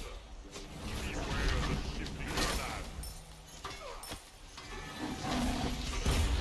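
Video game combat effects clash and whoosh.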